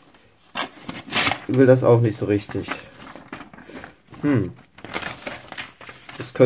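Sheets of paper rustle and crinkle as they are handled.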